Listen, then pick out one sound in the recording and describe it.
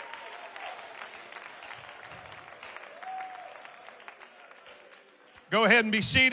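A crowd claps and cheers.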